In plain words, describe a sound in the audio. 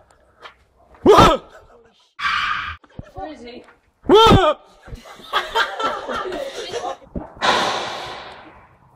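Young boys shout and yell excitedly close by.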